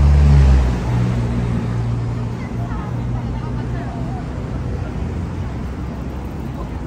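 Traffic hums steadily in a busy city street.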